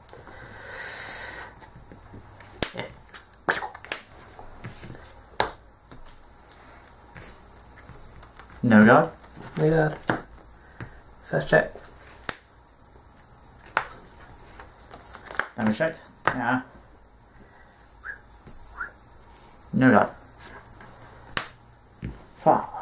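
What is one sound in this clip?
Playing cards tap and slide onto a table.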